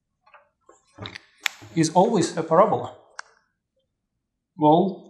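A young man speaks calmly, explaining.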